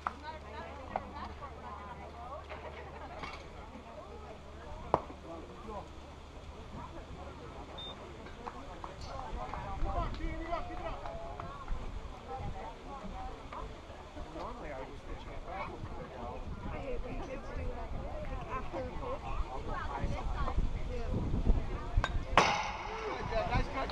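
Children and adults chatter and call out outdoors across a ballfield.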